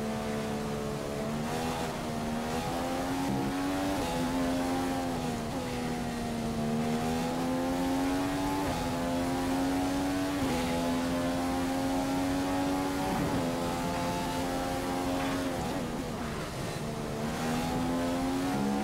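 A racing car engine screams at high revs, rising in pitch through each gear and dropping sharply at each gear change.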